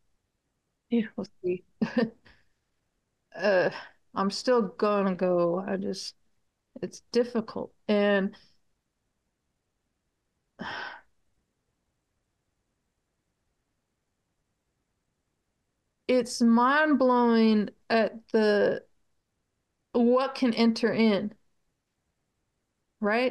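A middle-aged woman speaks calmly over an online call, with pauses.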